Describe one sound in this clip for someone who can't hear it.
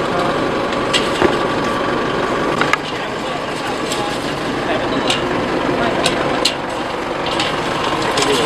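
Men talk nearby outdoors.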